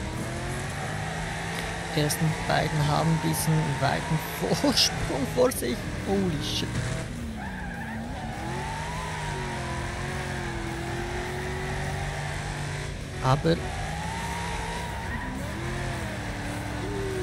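A racing car engine roars and revs steadily.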